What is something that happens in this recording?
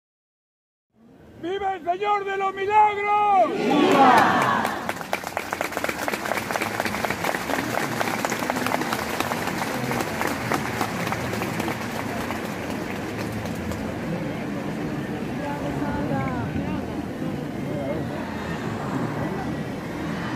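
A large crowd murmurs and chatters close by outdoors.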